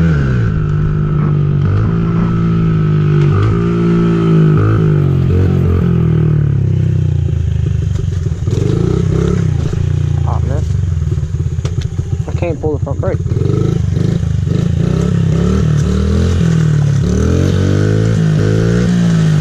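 A small motorbike engine hums and revs up and down close by.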